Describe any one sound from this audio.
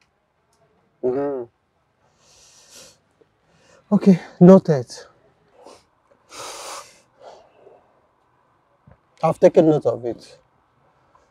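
A man speaks in short bursts nearby.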